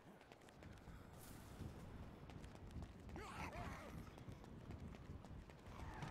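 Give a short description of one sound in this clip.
Bare feet patter on pavement while running.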